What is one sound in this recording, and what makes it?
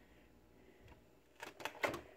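A plastic lid clicks shut.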